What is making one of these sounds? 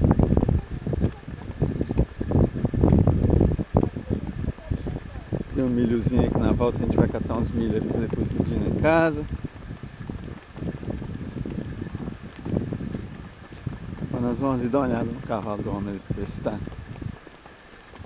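Wind buffets outdoors with low rumbling gusts.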